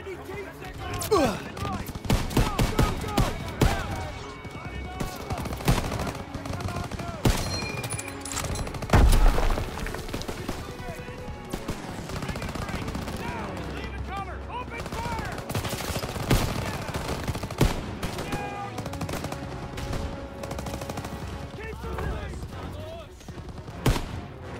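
A rifle fires sharp shots again and again.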